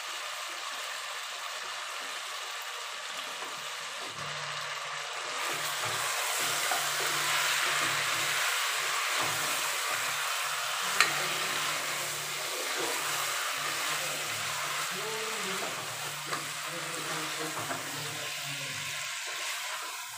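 Food sizzles in a hot pot.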